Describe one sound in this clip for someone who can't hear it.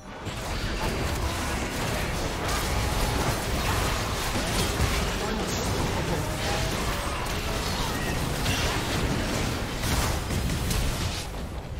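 Magic blasts and weapon hits crackle and boom in a busy fight.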